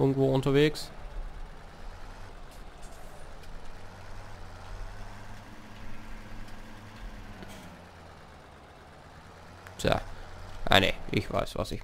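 A tractor engine rumbles steadily at low speed.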